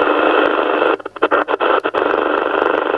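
A radio receiver crackles and cuts out briefly while being tuned.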